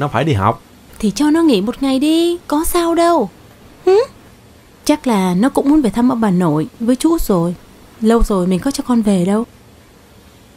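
A young woman speaks close by, coaxing and with animation.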